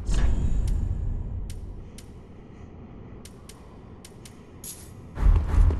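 Menu clicks tick softly.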